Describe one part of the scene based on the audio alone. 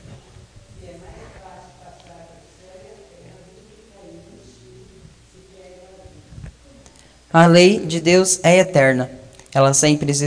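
A young man speaks into a microphone, first quietly and then loudly and clearly.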